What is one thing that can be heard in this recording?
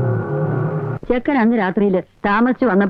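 An elderly woman speaks in a tense, emotional voice.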